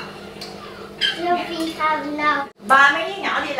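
A young child talks in a high voice nearby.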